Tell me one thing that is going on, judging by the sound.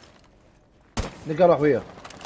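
A rifle fires a burst of loud gunshots.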